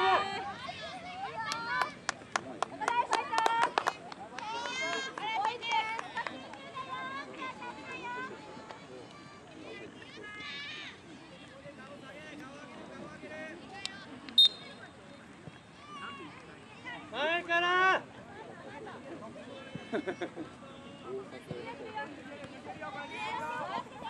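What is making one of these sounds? Children shout and call out outdoors across an open field.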